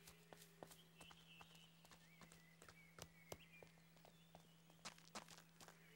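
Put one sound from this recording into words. Footsteps run across a gravel path.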